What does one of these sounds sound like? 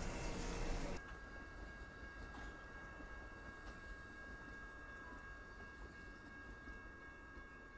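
A passenger train rolls past with a softer rumble.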